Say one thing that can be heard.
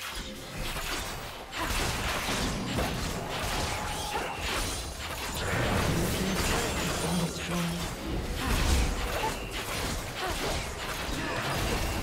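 Spell effects and fighting sounds of a video game crackle and burst.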